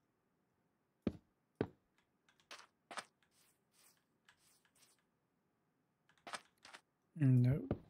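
Blocks knock softly as they are placed one after another.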